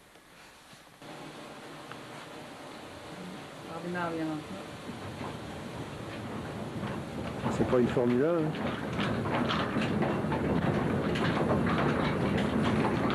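Flat belts run over pulleys on water mill machinery, clattering and whirring.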